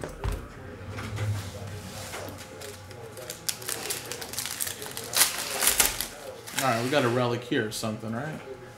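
A foil card pack crinkles and tears as hands open it.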